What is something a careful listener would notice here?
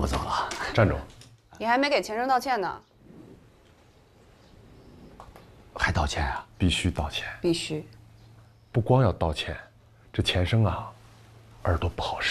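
An older man speaks gruffly, close by.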